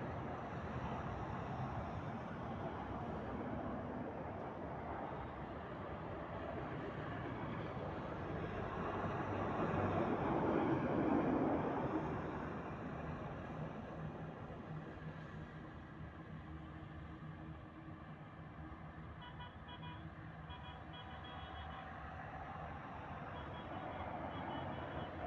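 Traffic rumbles steadily along a nearby road, with vehicles passing close by.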